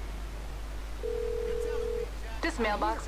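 A phone gives a single steady beep.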